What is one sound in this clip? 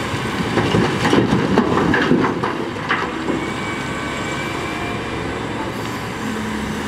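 A heavy diesel engine rumbles steadily.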